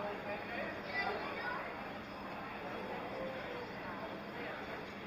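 Many people chatter at a distance outdoors.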